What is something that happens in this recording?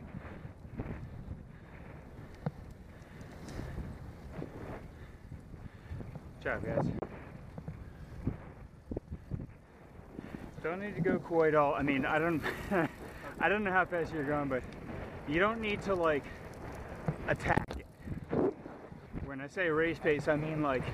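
Wind buffets loudly past a moving bicycle rider.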